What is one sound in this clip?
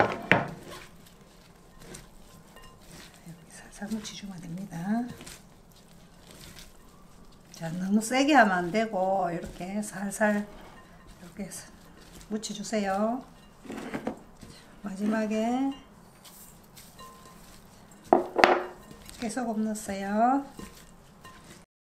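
Hands toss moist vegetables in a glass bowl with a soft, wet rustling.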